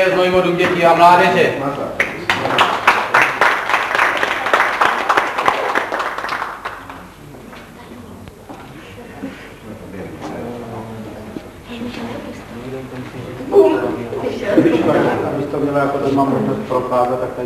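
An elderly man reads out.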